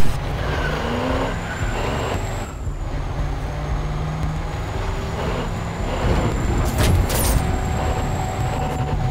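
A heavy truck engine rumbles steadily as it drives along a road.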